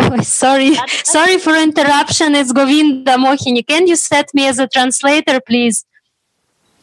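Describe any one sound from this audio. A middle-aged woman sings softly, heard over an online call.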